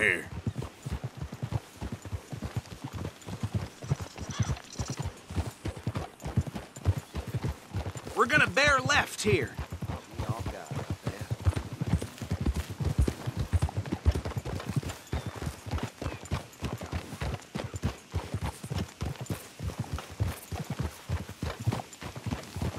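Horses' hooves thud steadily on a dirt path.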